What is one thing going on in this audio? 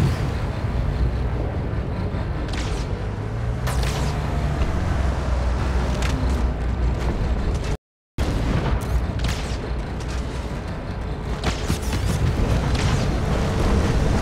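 A vehicle engine rumbles and revs as it drives over dirt.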